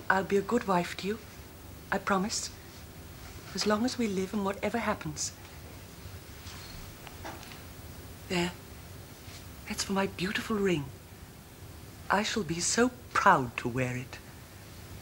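A man speaks quietly, close by.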